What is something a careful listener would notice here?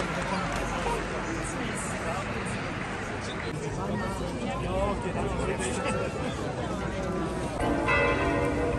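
A crowd of men and women chatter outdoors.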